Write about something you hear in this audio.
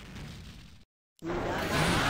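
A magic spell shimmers and whooshes.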